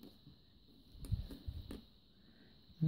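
Plastic nail tips tap and click softly on a hard surface.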